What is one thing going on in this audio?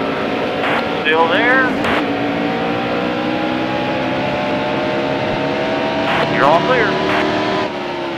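Tyres screech briefly as race cars rub side by side.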